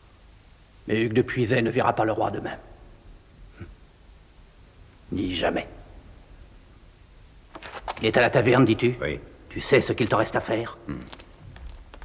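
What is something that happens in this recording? A man speaks calmly and slowly nearby.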